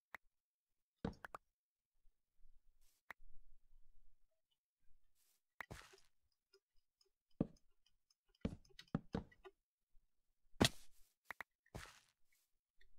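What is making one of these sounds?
Wooden blocks are placed with soft thumps.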